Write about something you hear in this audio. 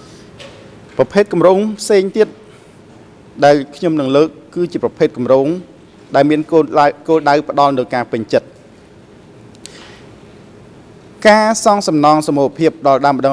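A middle-aged man reads out steadily into a microphone, with pauses.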